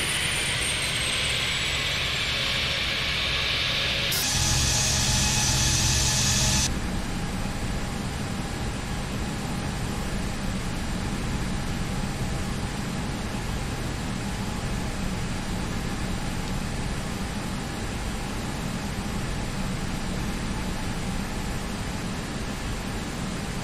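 A jet airliner's engines hum and whine steadily.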